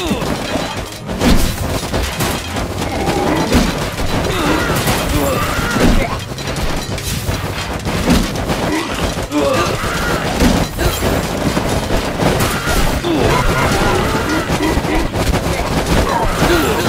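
Swords and weapons clash and strike repeatedly in a crowded battle.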